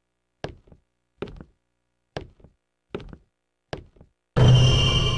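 Footsteps tap at an even pace on a hard floor.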